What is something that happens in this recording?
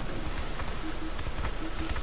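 Water splashes under a vehicle.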